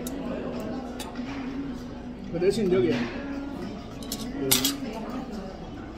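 Metal cutlery clinks and scrapes against a pan.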